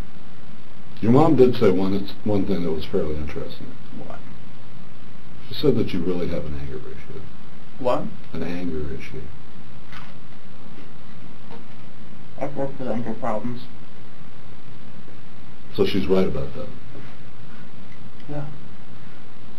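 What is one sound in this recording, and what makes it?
A young man speaks quietly, in short answers.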